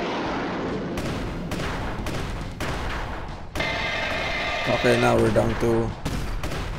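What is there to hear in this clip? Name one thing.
Explosions rumble and boom repeatedly.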